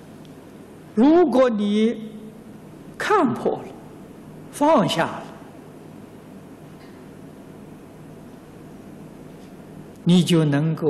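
An elderly man speaks slowly and calmly into a microphone, with long pauses between phrases.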